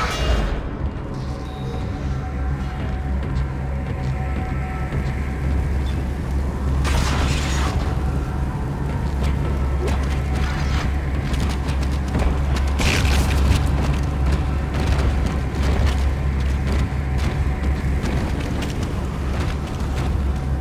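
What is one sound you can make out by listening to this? Heavy metal-booted footsteps clank on a hard floor.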